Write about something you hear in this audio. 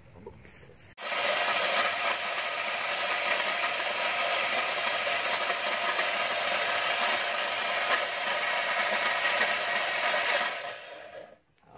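An electric grinder whirs loudly and steadily.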